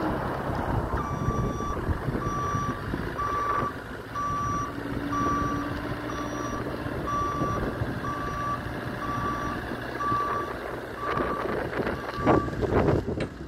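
A reversing alarm beeps repeatedly.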